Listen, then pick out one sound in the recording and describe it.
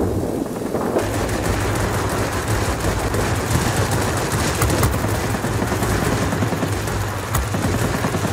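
A cannon fires in rapid bursts.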